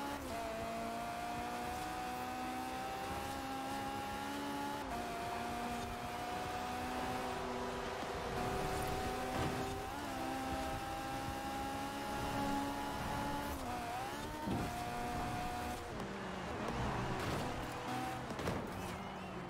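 A racing car engine roars at high revs, rising in pitch and dropping briefly at each gear change.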